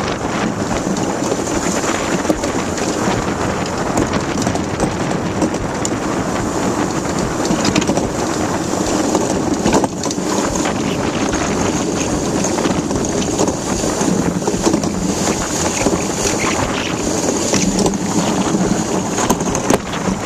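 Ice boat runners scrape and rumble steadily across ice.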